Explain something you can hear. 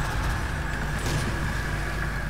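A shotgun fires a single loud blast.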